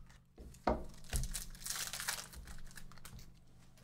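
A wrapper crinkles and tears.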